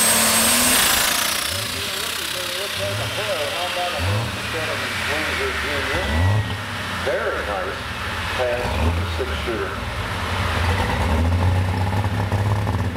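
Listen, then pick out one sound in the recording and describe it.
A tractor engine idles with a low, uneven rumble.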